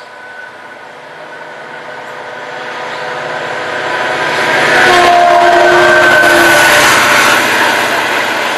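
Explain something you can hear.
A diesel locomotive approaches and roars loudly past up close.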